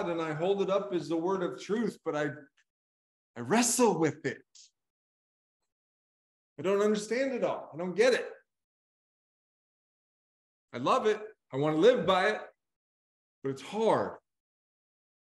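A middle-aged man speaks with animation through an online call, in short bursts with pauses.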